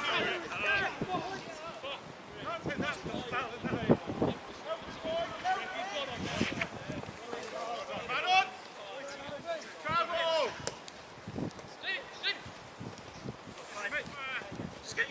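Men shout and call to each other across an open outdoor field.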